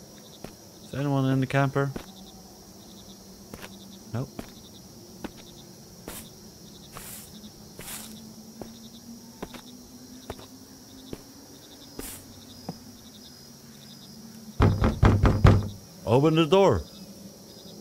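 A man speaks into a close microphone, now and then.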